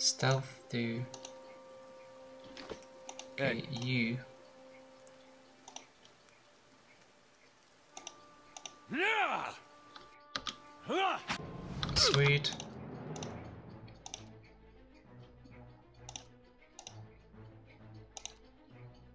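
Game menu clicks and short chimes sound now and then.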